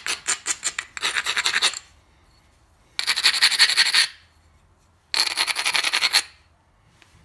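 A coarse abrasive block rubs back and forth over leather in short bursts.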